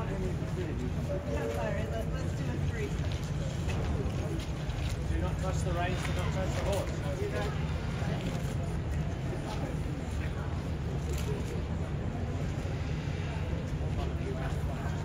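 A woman and other adults chat nearby outdoors.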